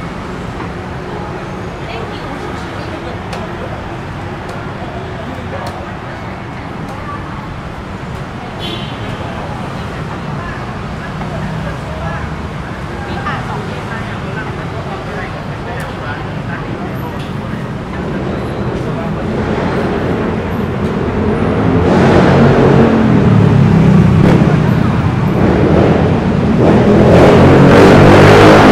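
A crowd of people chatters and murmurs nearby outdoors.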